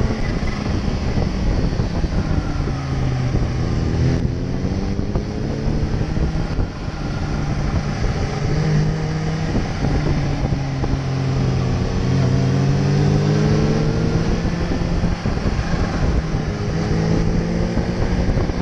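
A motorcycle engine roars up close, rising and falling in pitch as it shifts gears.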